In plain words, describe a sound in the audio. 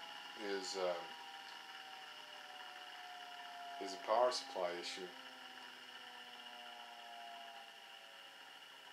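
An electric motor hums with a steady high whine.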